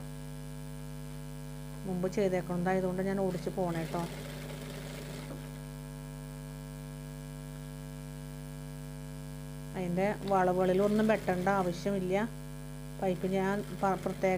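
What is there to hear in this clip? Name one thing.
A sewing machine hums and rattles steadily as it stitches.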